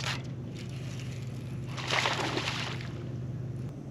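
A fishing line whirs as a reel is cranked.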